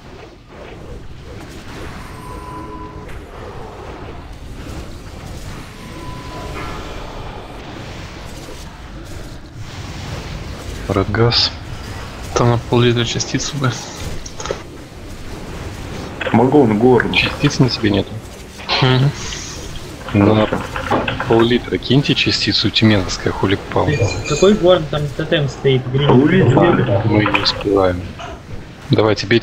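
Fiery spell effects roar and crackle.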